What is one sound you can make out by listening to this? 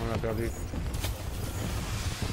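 A heavy blow lands with a dull thud.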